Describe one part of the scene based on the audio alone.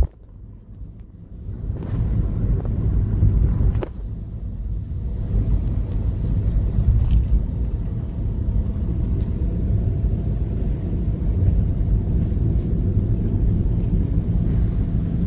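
A car engine hums low and steady from inside the car, with road rumble.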